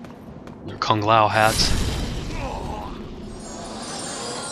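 A magic blast bursts with a loud whoosh.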